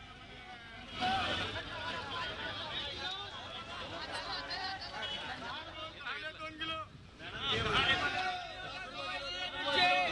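A crowd of men talks and calls out loudly outdoors.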